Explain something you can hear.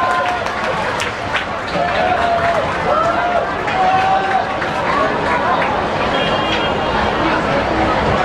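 A crowd of young people chatters and calls out nearby.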